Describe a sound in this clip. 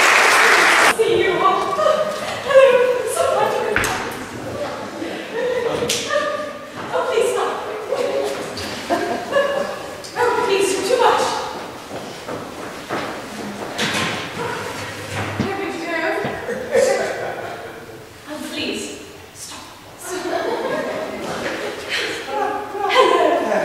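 A woman sings loudly in an operatic voice.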